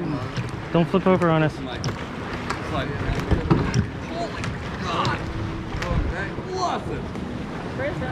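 Adults in kayaks talk and call out to each other close by, outdoors on open water.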